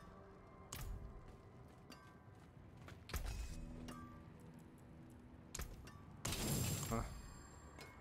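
Game sound effects whoosh and clang in bursts.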